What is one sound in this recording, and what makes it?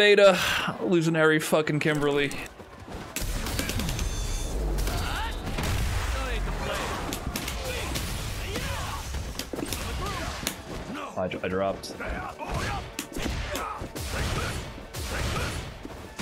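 Punches and kicks thud and crack in a video game fight.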